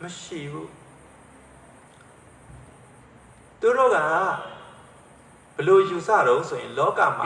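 An elderly man speaks calmly into a microphone, heard through a loudspeaker, with pauses between phrases.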